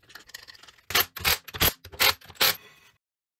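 An impact wrench whirs in short, loud bursts.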